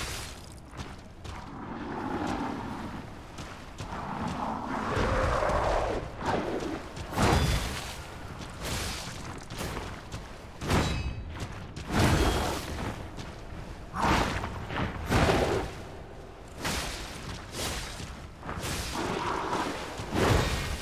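A monster growls and roars.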